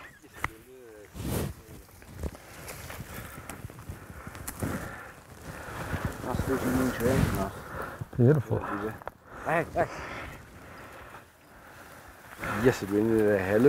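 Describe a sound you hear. Footsteps rustle through dry grass and brush.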